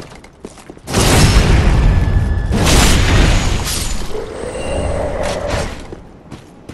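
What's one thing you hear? A heavy blade slashes through flesh with a wet burst.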